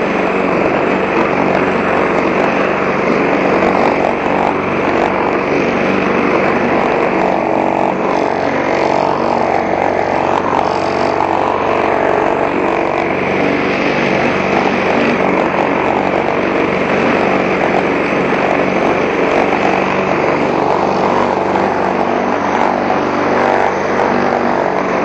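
A petrol lawn mower engine roars steadily up close.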